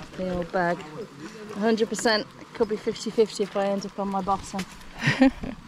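A second woman talks and answers nearby.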